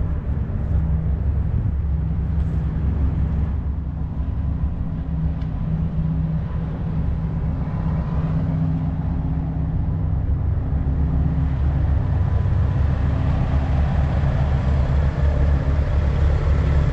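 Big truck diesel engines idle with a steady, deep rumble.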